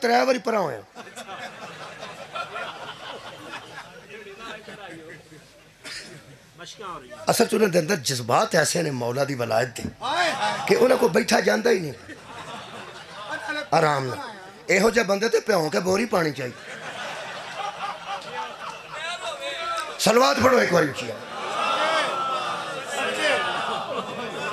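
A man speaks passionately into a microphone, heard through loudspeakers.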